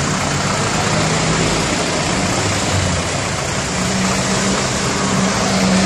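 Cars drive past on a busy street.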